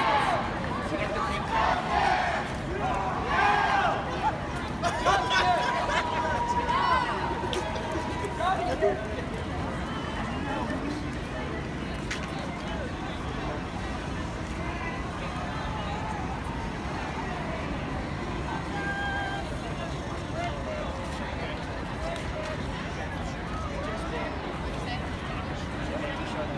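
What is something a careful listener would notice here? A crowd of marchers shouts and chants loudly outdoors.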